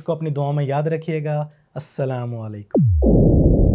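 A man speaks clearly into a microphone.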